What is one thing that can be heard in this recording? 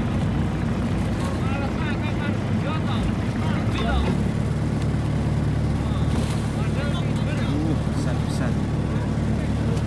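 Men shout and call out to each other from a boat a short way off.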